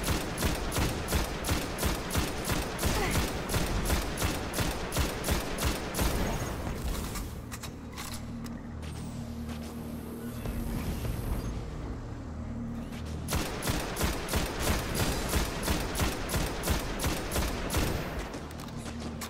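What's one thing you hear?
Rapid gunfire rattles in quick, even bursts.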